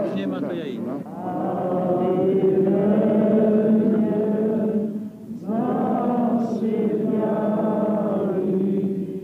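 A large crowd sings together in long held notes.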